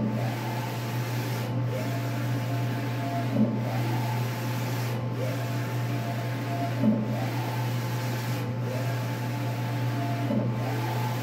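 A printer hums steadily.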